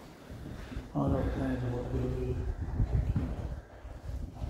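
A man speaks nearby in a calm voice.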